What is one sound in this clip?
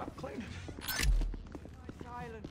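A door bumps open.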